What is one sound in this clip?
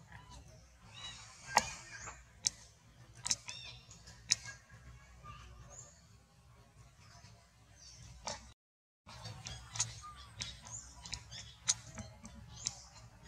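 A young monkey squeaks with short, high cries.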